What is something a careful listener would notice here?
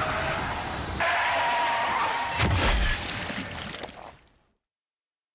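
Water sprays violently with a loud crash.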